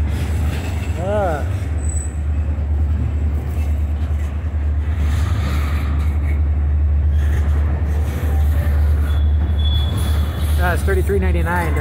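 Train wheels briefly squeal against the rails.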